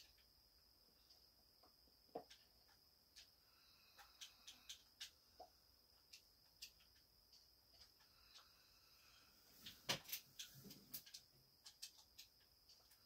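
Short game menu clicks and blips come from a television speaker.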